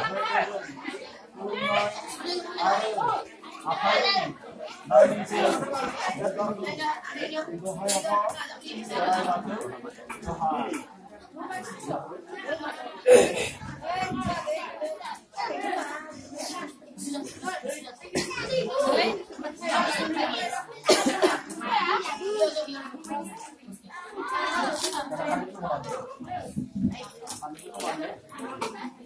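A crowd of women and men chatter nearby in a busy, lively gathering.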